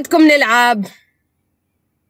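A young woman speaks briefly and cheerfully close to the microphone.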